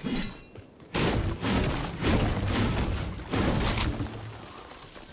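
A pickaxe strikes a tree with repeated thuds.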